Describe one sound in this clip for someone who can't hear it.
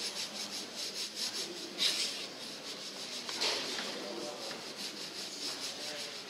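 Gloved hands rub gritty powder through a sieve with a steady rasping hiss.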